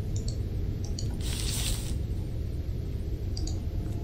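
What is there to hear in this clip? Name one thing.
A sheet of paper rustles as it is picked up.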